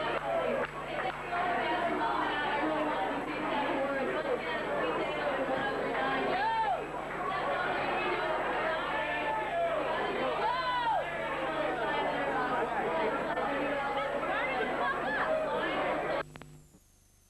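A crowd of men and women chatters loudly nearby in a busy room.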